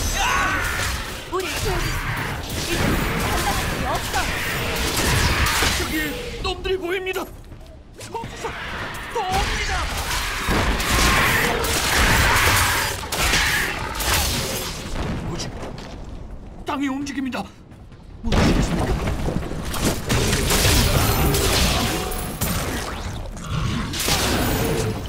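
Weapons clash and strike monsters over and over.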